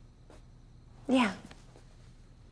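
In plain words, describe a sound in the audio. A woman groans in pain.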